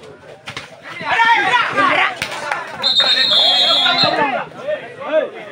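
A crowd of spectators shouts and cheers loudly outdoors.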